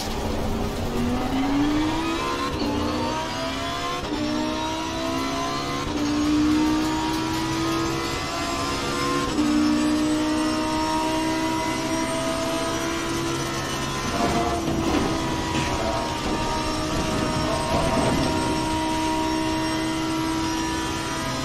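A race car engine revs up hard through the gears, its pitch climbing and dropping at each shift.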